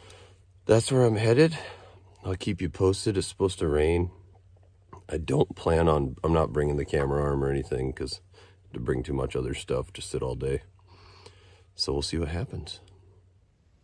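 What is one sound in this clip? A man speaks quietly and calmly close to a microphone.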